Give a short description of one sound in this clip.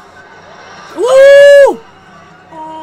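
A man exclaims loudly in surprise.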